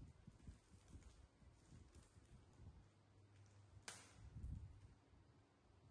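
A plastic bag crinkles softly as it is handled close by.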